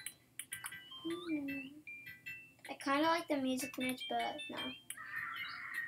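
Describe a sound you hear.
A young boy talks with animation close to a microphone.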